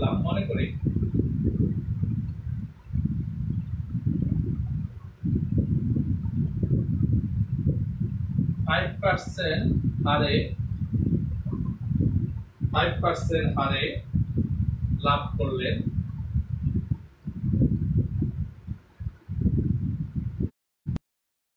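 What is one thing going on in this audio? A man speaks calmly, close by and muffled.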